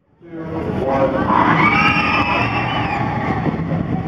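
Riders on a roller coaster scream.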